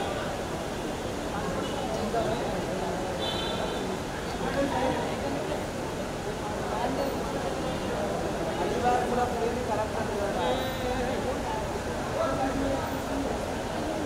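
Men talk close by amid the crowd.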